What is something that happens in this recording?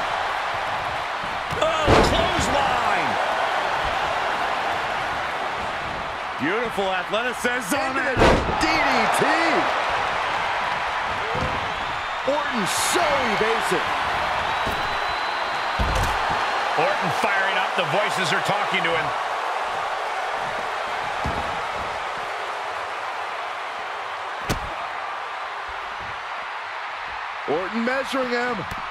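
A large arena crowd cheers.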